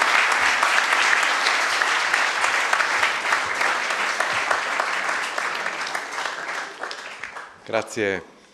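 An audience applauds loudly in a large room, then the applause fades.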